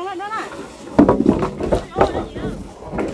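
Wooden logs knock and thud as they are moved.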